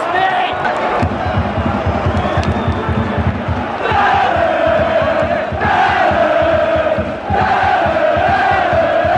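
Fans clap their hands rhythmically in the stands.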